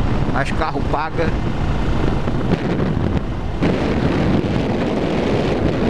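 A motorcycle engine hums steadily at speed.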